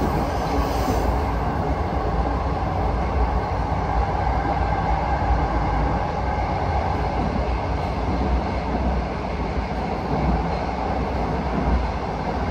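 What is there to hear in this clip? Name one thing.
A subway train rumbles and roars loudly along the tracks.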